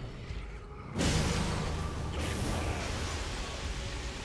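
A loud magical blast bursts out with a deep rumble.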